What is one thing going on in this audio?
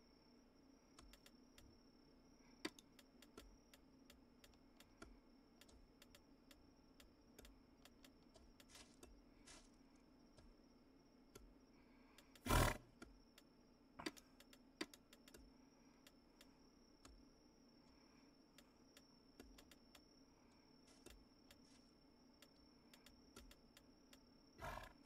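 Soft clicks sound as menu items are picked, again and again.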